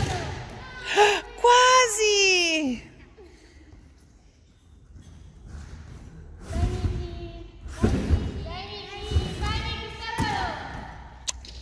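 Young girls call out and cheer in high voices in a large echoing hall.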